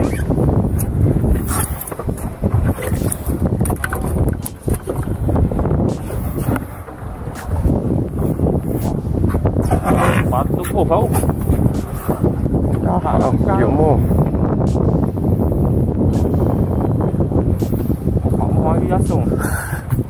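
A fishing reel clicks and whirs as the line is wound in.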